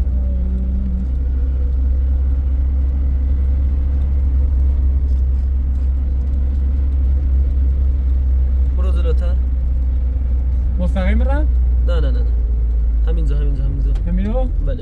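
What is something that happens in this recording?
A car engine rumbles low and steady, heard from inside the car.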